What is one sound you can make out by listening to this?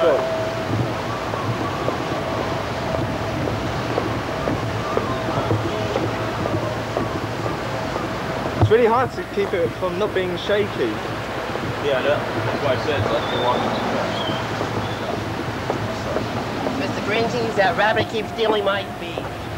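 Street traffic rumbles steadily in the open air.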